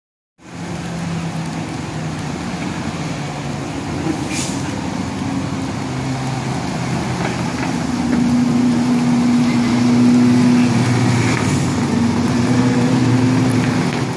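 Racing car engines roar past close by, one after another.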